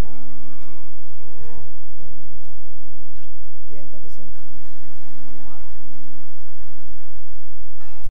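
An acoustic guitar is strummed through loudspeakers.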